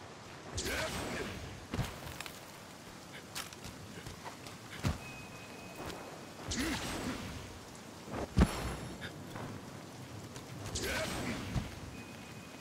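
Game sound effects whoosh and thud as a character leaps and lands.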